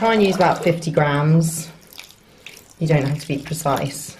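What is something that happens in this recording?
Wet cloth rustles and squelches as hands rub it.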